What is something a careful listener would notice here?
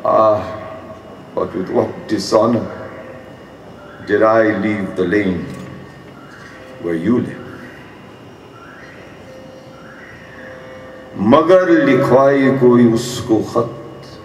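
An elderly man reads aloud slowly into a microphone, with pauses.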